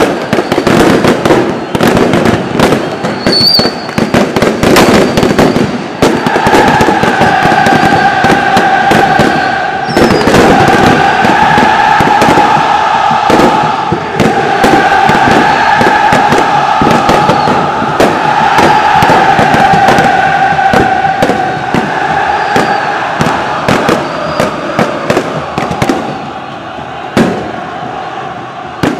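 A huge crowd chants and sings loudly in a stadium.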